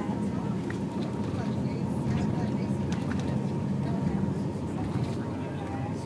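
Passengers chatter in a low murmur nearby.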